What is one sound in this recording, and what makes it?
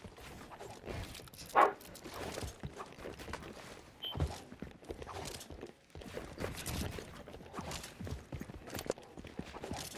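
Video game building pieces snap into place with clicks.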